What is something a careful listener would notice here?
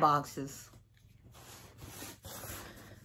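A cardboard box rustles and scrapes as it is handled.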